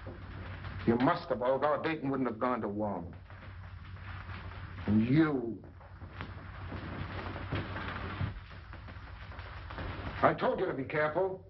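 A man speaks calmly, heard through an old, hissy recording.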